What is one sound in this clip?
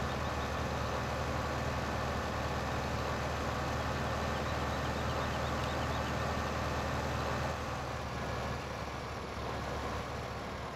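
A spreader whirs.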